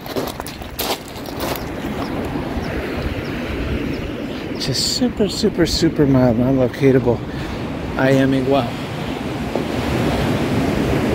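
Footsteps crunch on pebbles and sand.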